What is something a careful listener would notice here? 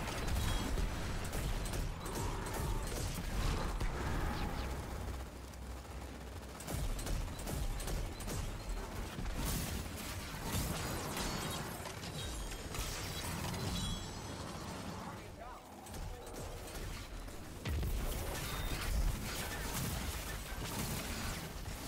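Rapid gunfire rattles again and again.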